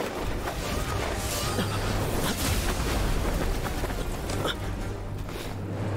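A magical blast explodes with a loud roar.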